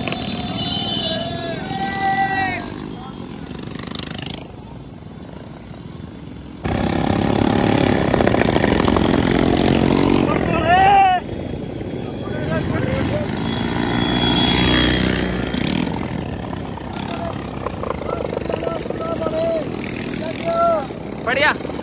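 Motorcycle engines rumble past on a road.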